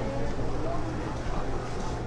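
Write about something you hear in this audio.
Metal tongs clack against fried food.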